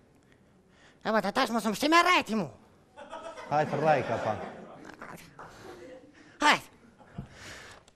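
A man speaks theatrically into a microphone.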